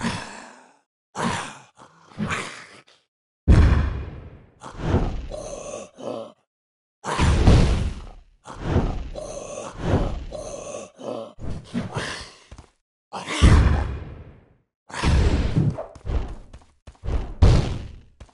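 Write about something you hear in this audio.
Magic blasts crackle and burst in quick bursts.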